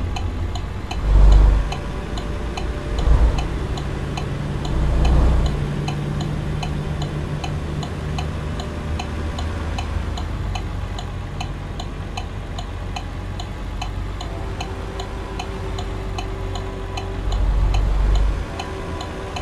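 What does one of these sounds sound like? A truck engine revs up in loud low bursts.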